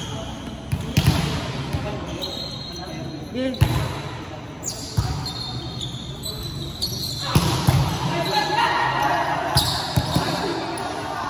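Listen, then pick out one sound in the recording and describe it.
A volleyball thuds off players' hands and arms in a large echoing hall.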